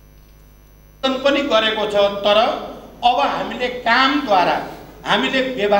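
An elderly man speaks forcefully into a microphone over a loudspeaker.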